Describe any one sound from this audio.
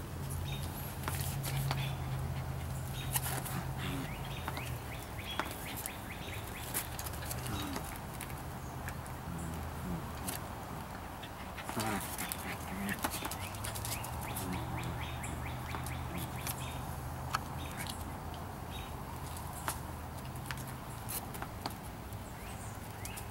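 Paws scrabble and knock on a plastic pet bed.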